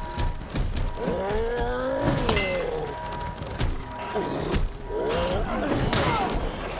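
Heavy blows land with sharp thuds.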